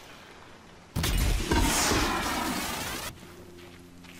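An arrow whooshes from a bow.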